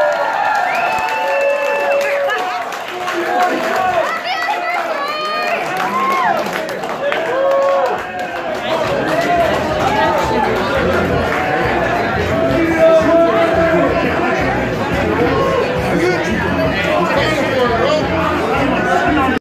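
A crowd of men and women chatter loudly nearby.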